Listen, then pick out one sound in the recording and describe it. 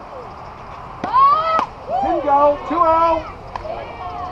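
Young women shout and cheer loudly nearby, outdoors.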